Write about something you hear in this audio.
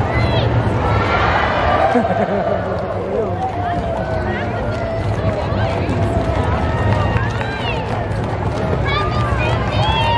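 Horses' hooves clop on pavement as riders pass close by.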